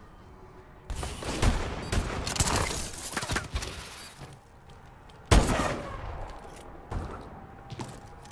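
Gunshots fire in loud, sharp bursts.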